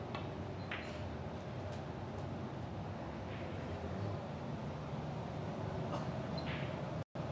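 Billiard balls clack against each other.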